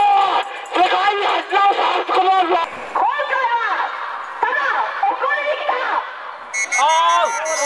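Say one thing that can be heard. A man shouts through a megaphone.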